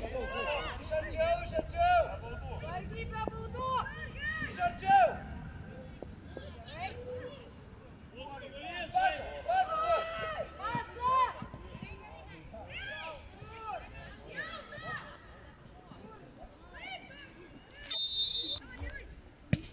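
Young men shout to each other from a distance outdoors.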